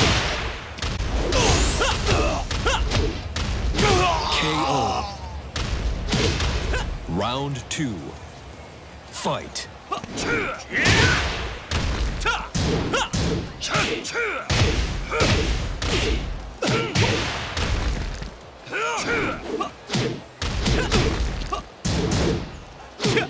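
A fighter grunts and shouts with each blow.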